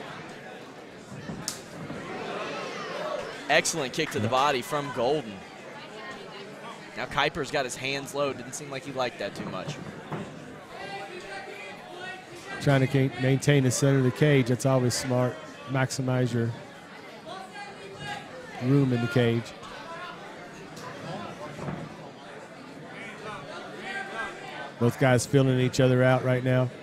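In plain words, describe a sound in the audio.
A crowd murmurs and cheers in a large hall.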